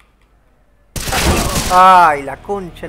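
A loud gunshot rings out.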